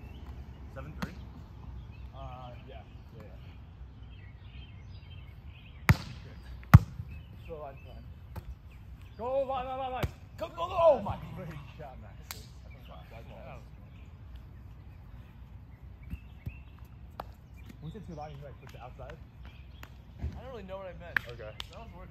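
Hands bump and slap a volleyball outdoors.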